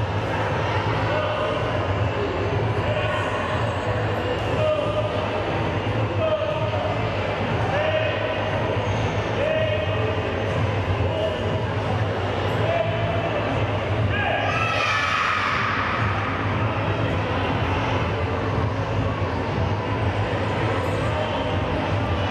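A man calls out commands loudly in a large echoing hall.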